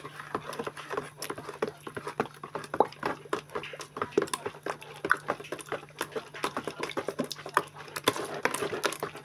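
A utensil clicks and scrapes against the side of a plastic bowl.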